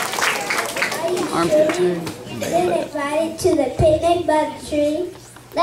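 Young children speak into a microphone over a loudspeaker.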